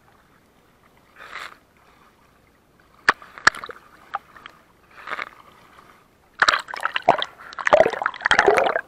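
Water gurgles and bubbles underwater.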